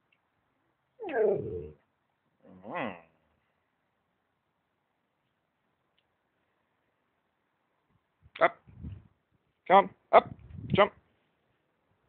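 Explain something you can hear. A dog whines in short, pitched bursts close by.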